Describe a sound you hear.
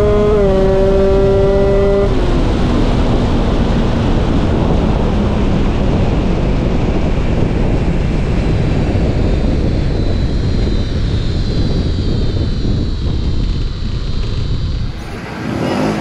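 A motorcycle engine roars at speed.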